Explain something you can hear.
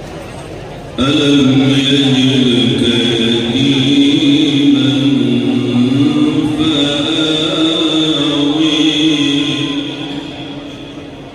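An elderly man chants in a loud, drawn-out melody over a loudspeaker.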